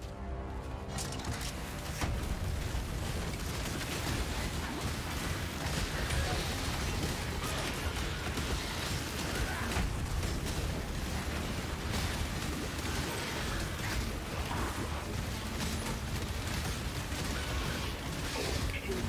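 Spell blasts and explosions crackle and boom in quick succession.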